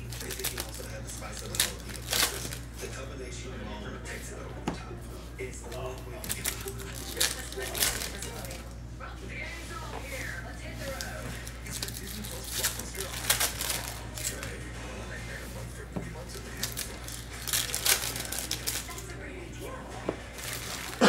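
Plastic wrappers crinkle and tear as hands open packs of cards.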